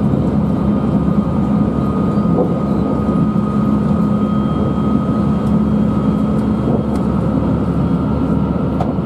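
A train rumbles steadily along the tracks with a constant low hum.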